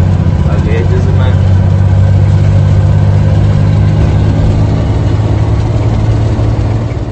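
A vehicle engine drones steadily while driving.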